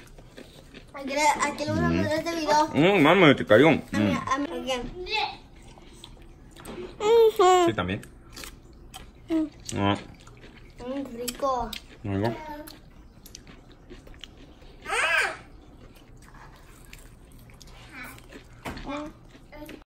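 A young girl talks and laughs close by.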